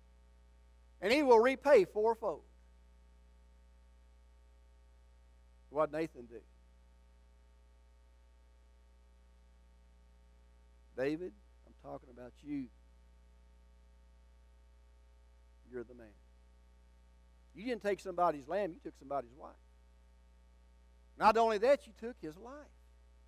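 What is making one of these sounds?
An older man preaches with animation through a microphone, in bursts with long pauses, in a large echoing hall.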